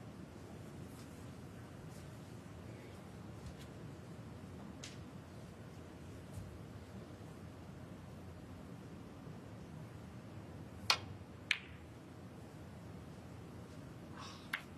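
A seated crowd murmurs quietly in a large hall.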